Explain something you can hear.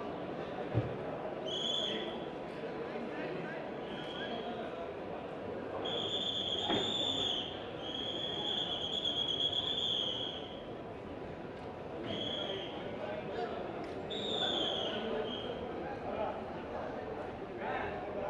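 A crowd murmurs and chatters in a busy indoor hall.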